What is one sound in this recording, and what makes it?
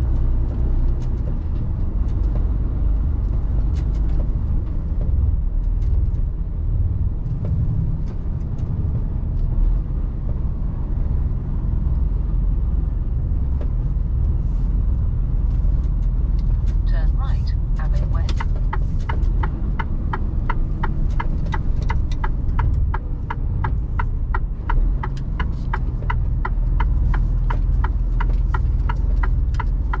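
Tyres rumble over a brick road.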